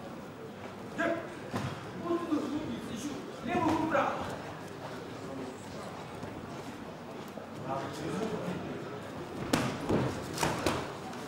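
Boxing gloves thud against bodies and gloves in sharp bursts.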